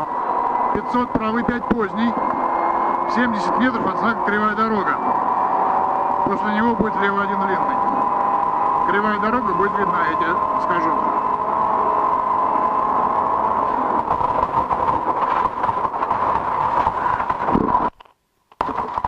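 A rally car engine roars loudly at high revs.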